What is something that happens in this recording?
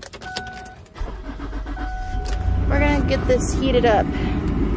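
A car engine starts and idles with a low rumble.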